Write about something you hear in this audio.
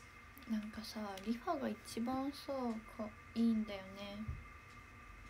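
A young woman speaks softly and close to a microphone.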